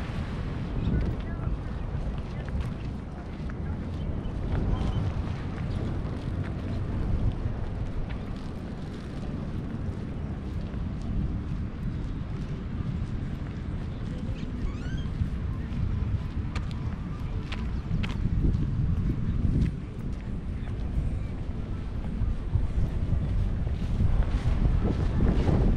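Wind buffets a microphone outdoors, rumbling steadily.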